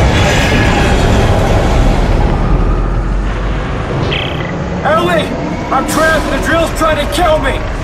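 A huge drill grinds and rumbles loudly.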